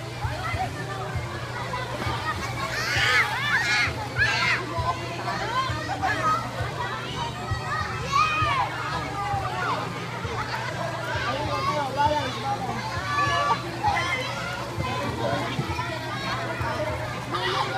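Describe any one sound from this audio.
Water splashes as swimmers paddle through a pool.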